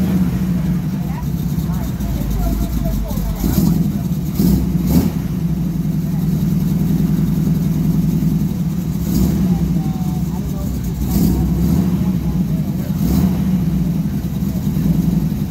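A truck engine idles with a deep, steady rumble close by.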